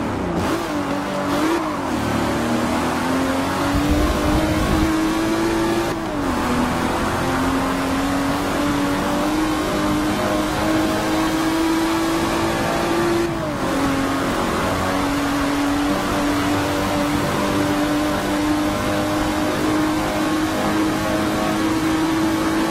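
A racing car engine roars at high revs, rising steadily in pitch and dipping briefly at each gear change.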